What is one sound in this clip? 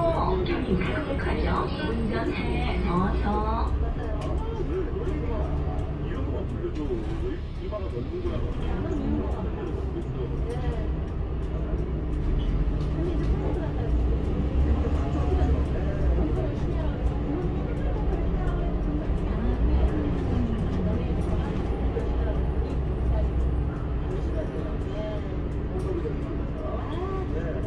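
A bus engine rumbles and hums steadily while driving.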